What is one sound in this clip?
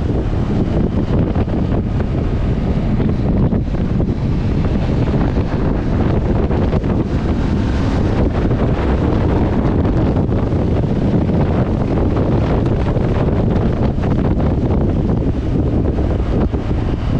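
Wind rushes loudly past the microphone.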